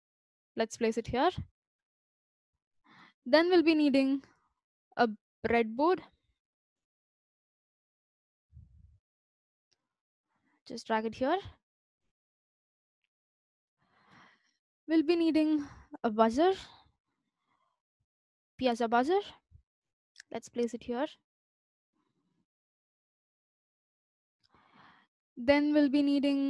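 A young woman speaks calmly and clearly into a close microphone, in short bursts.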